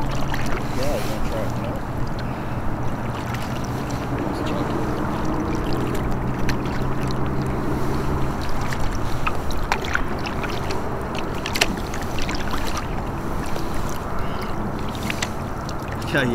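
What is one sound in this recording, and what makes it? A kayak paddle splashes in water.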